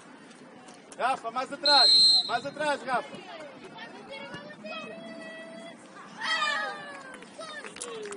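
Young players shout to one another outdoors.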